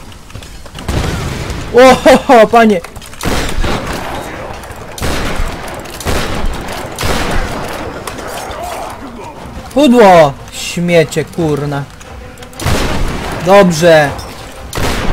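Gunshots crack out in bursts.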